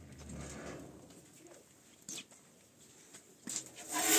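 A metal door rattles and creaks open.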